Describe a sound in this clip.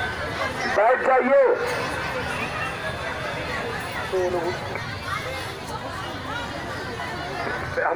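A large crowd of women chatter and murmur outdoors.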